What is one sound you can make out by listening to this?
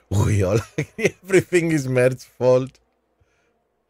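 A middle-aged man laughs into a close microphone.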